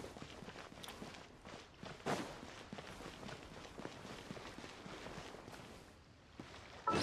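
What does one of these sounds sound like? Footsteps tap along a stone path.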